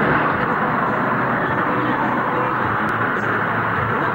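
A car drives past on a road.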